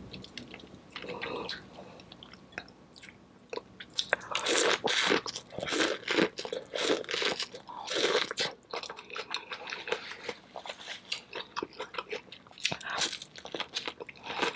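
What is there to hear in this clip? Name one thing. A woman chews wetly and smacks her lips close to a microphone.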